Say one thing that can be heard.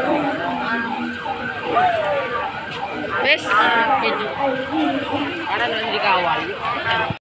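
People chatter nearby in a busy street.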